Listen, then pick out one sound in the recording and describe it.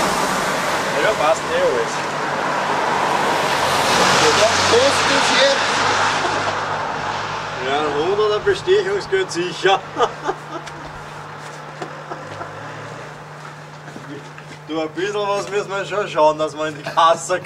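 Two men talk calmly outdoors, close by.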